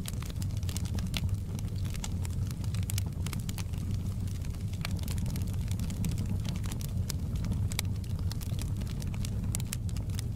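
Burning logs crackle and pop in a fire.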